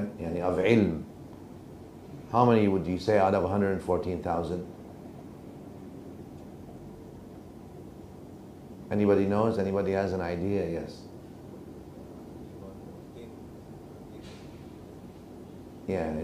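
A middle-aged man speaks calmly into a microphone, in short phrases with long pauses.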